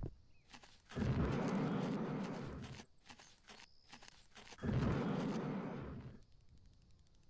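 A jetpack roars in loud bursts that fade out.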